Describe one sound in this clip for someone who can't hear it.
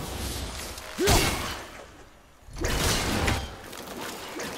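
A magic blast whooshes and bursts loudly.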